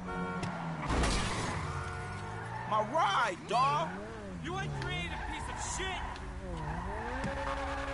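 Tyres screech during a skid.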